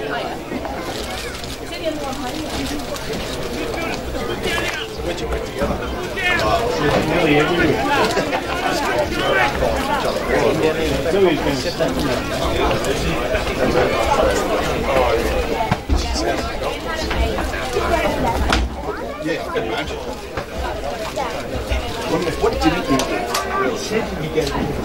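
Men shout to each other across an open field.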